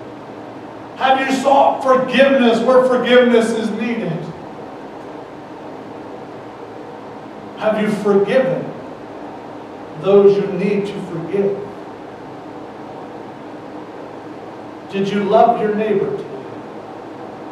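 A man speaks calmly into a headset microphone in bursts with long pauses.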